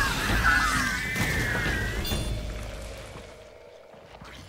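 A huge creature roars and thrashes loudly.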